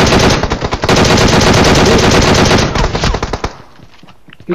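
A rifle fires rapidly in long bursts.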